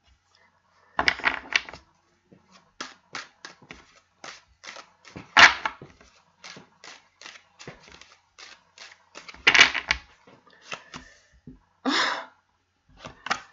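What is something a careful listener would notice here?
A card is laid down on a table with a soft slap.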